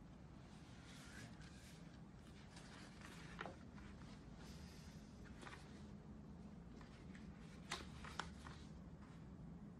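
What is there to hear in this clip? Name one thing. Sheets of paper rustle as they are handled.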